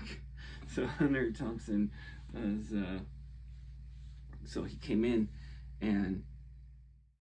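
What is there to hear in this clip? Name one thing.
A middle-aged man talks calmly, close to a microphone.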